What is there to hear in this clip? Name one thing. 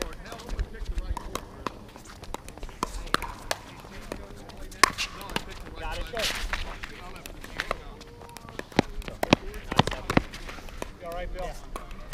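Paddles pop sharply against a plastic ball in a quick back-and-forth rally.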